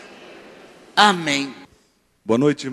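An elderly woman speaks into a microphone through loudspeakers.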